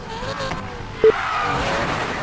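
A car crashes hard into a sign.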